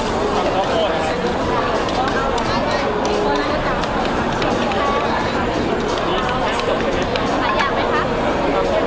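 Utensils clink and clatter against dishes.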